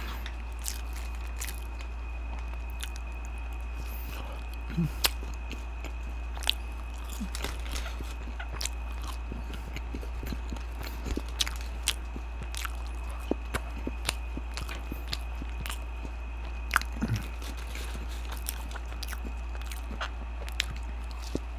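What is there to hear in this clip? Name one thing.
A man chews crunchy food close to a microphone.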